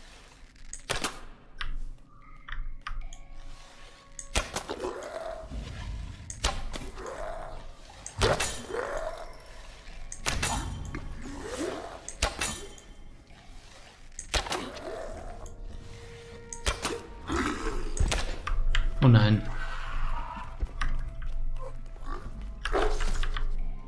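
Sharp shots and impacts crack out again and again.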